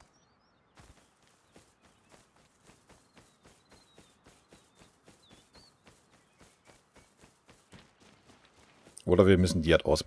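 Footsteps thud softly on grass and rocks at a steady walking pace.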